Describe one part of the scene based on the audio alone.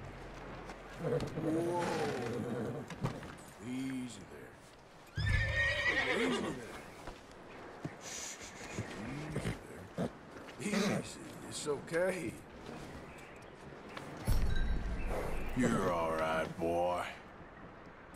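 A man speaks softly and soothingly to a horse.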